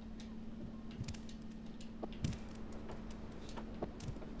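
Soft paw steps patter on a hard floor.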